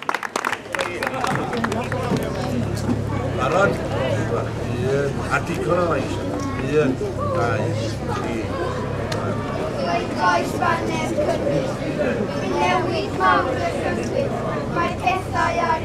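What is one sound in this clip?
A man speaks loudly to a crowd outdoors.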